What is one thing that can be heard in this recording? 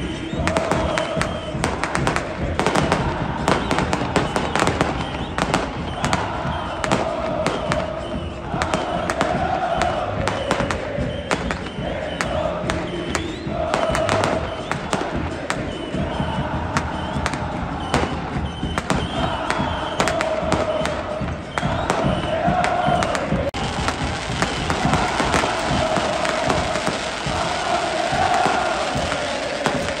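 A large stadium crowd sings and chants loudly together.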